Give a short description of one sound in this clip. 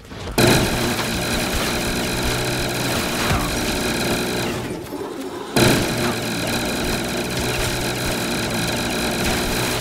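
A machine gun fires in rapid, continuous bursts.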